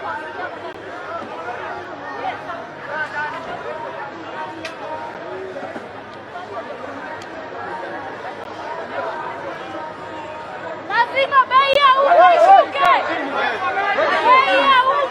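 A crowd chatters and calls out nearby.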